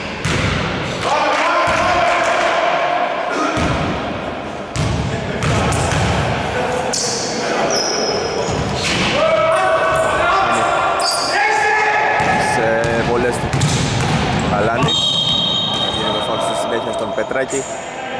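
Men shout to each other across the hall.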